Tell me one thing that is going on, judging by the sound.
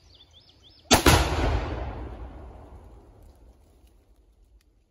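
A rifle fires a single loud shot that echoes and fades outdoors.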